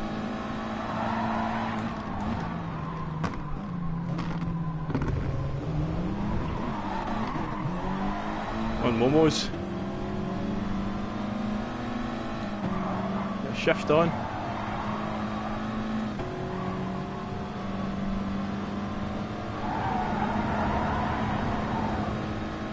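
A racing car engine drones and revs, rising in pitch through the gears.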